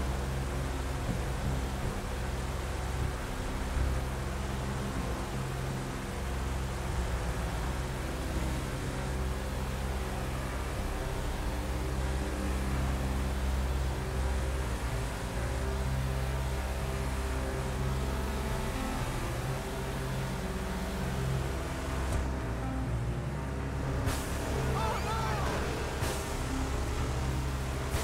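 An off-road pickup truck's engine drones as it cruises at speed on a highway.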